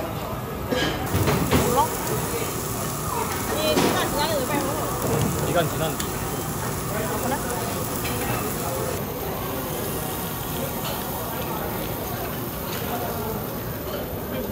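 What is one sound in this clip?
Meat sizzles steadily on a hot grill.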